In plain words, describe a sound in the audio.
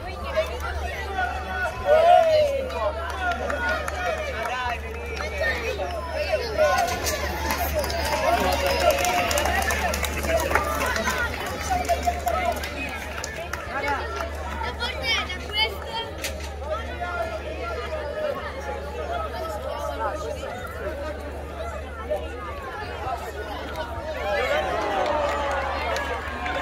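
A crowd of children and adults chatters and calls out outdoors.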